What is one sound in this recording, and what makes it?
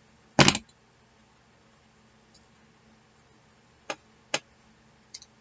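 Paper crinkles and taps.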